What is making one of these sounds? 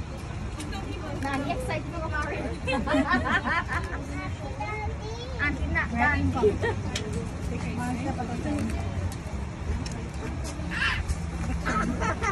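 Women talk with animation close by.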